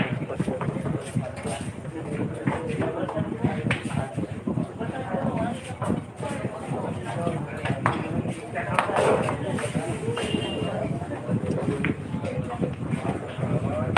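Men and women chatter nearby throughout.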